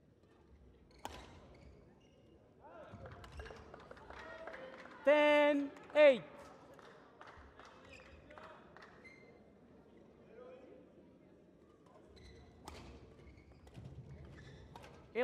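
A shuttlecock is struck with sharp pops of a racket.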